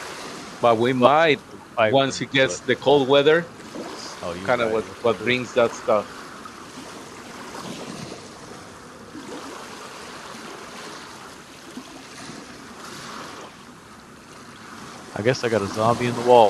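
A man talks into a microphone with animation, close up.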